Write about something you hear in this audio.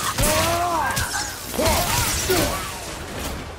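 An axe strikes with heavy thuds.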